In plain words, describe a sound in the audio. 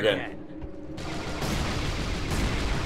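Gunshots fire rapidly.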